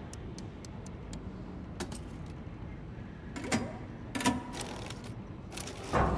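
Short electronic clicks sound as menu items are selected.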